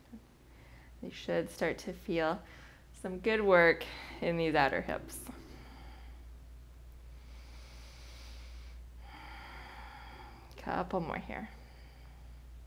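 A woman speaks calmly and clearly, giving slow instructions close to a microphone.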